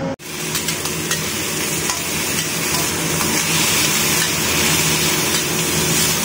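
A metal spatula scrapes against a pan.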